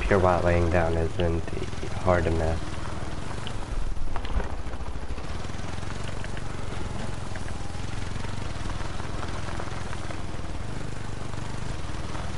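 A quad bike engine hums steadily as it drives over rough ground.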